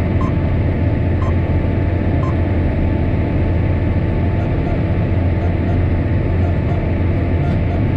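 A middle-aged man talks over the engine noise.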